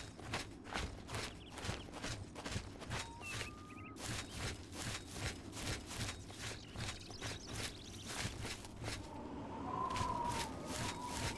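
Footsteps crunch steadily through grass and over stony ground.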